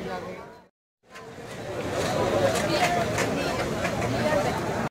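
A crowd of young men chatters nearby, outdoors.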